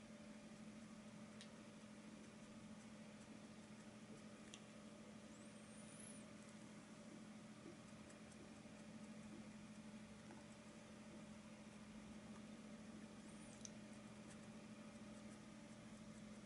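A paintbrush softly scrapes and dabs on canvas.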